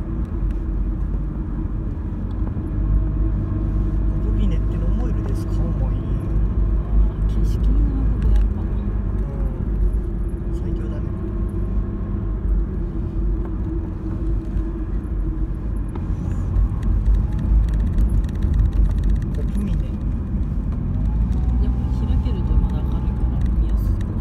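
A car engine hums under load, heard from inside, as the car climbs a winding uphill road.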